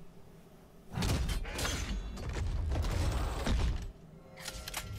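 A crowbar pries open a wooden crate with creaks and knocks.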